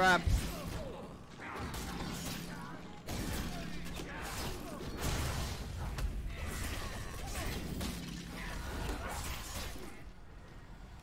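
Blows and slashes thud and crash in a fight.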